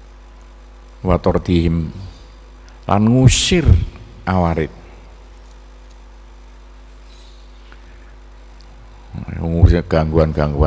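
A man speaks slowly into a microphone, with long pauses.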